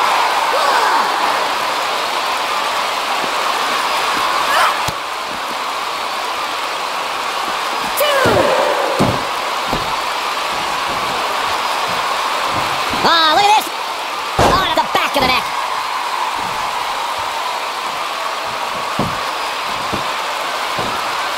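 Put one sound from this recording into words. A large crowd cheers and murmurs steadily throughout.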